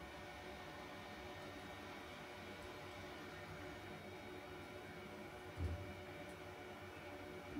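Equipment fans hum steadily close by.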